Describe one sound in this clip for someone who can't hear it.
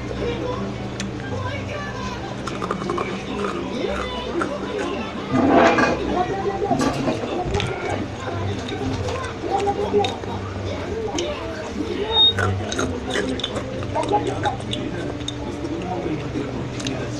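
Wet mouth clicks and smacks come through a microphone.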